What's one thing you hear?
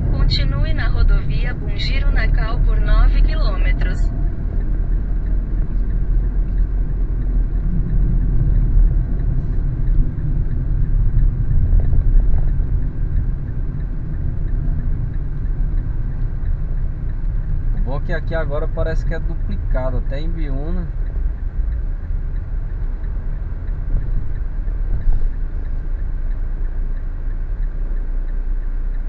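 A car engine hums steadily with a low road rumble.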